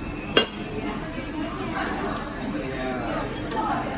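Metal tongs clink against a grill grate.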